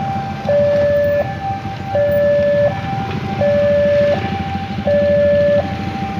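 A railway crossing signal sounds a steady two-tone alarm that alternates high and low.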